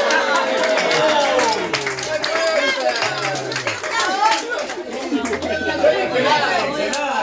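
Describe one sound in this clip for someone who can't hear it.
Several young men and women talk and chatter at once nearby.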